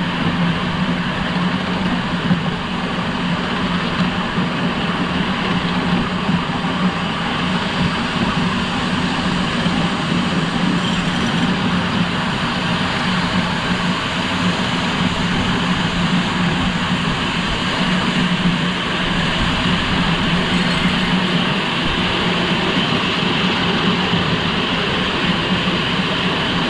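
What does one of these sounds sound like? A small steam locomotive chuffs steadily along.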